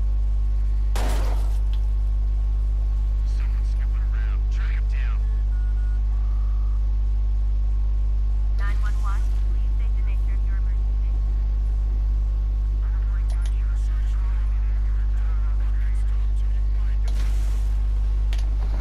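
Gunshots ring out in short bursts.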